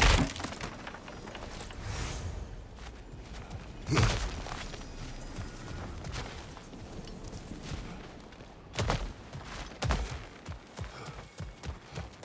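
Heavy footsteps crunch on stone and gravel.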